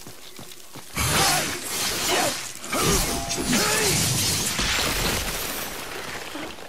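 A blade swishes and slashes through the air.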